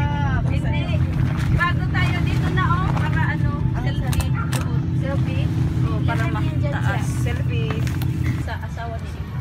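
Several women and men chatter and call out nearby.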